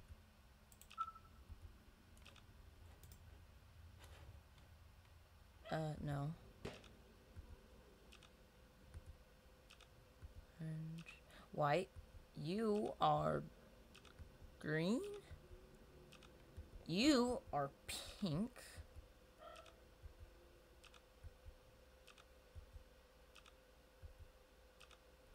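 A button clicks several times.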